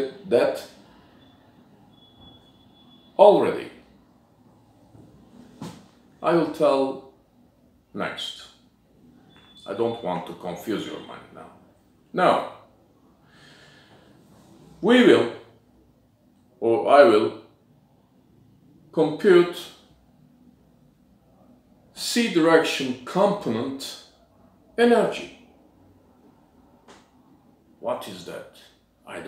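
An older man speaks calmly and slowly, in short phrases with pauses, close by.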